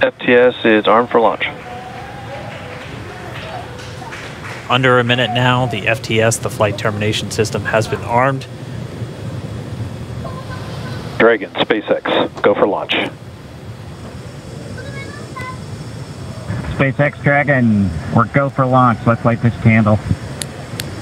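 A man speaks calmly over a crackly radio link, in short bursts.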